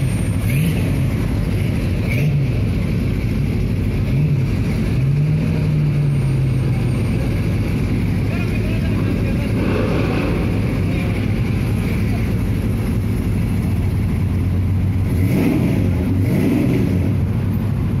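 A car engine revs in short bursts.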